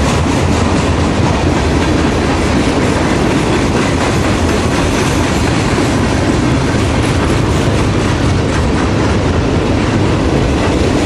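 Steel wheels clatter rhythmically over rail joints.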